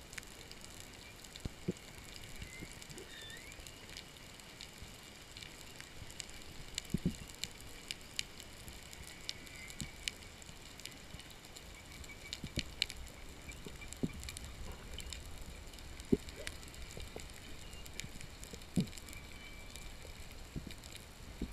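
Faint clicks and crackles sound underwater from a reef.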